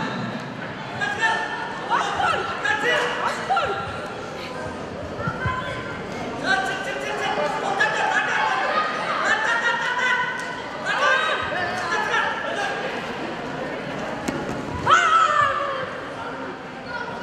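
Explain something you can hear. Children and adults shout encouragement from the side.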